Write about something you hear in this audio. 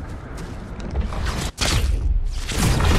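A loud electric blast bursts with a rushing whoosh.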